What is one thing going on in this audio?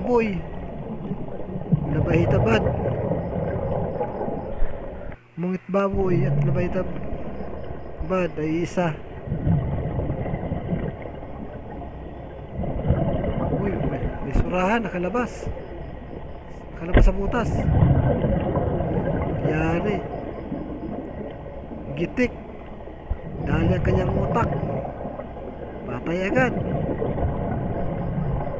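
Bubbles burst out and gurgle underwater in bursts every few seconds.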